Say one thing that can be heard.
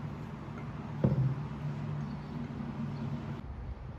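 A spoon stirs liquid, clinking against a glass jug.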